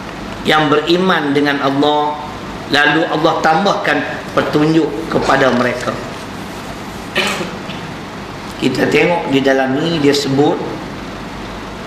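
A middle-aged man speaks calmly into a microphone, reading out.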